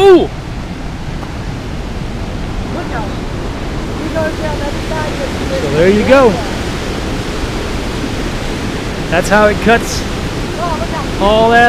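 Water rushes through a rocky gorge below, growing louder.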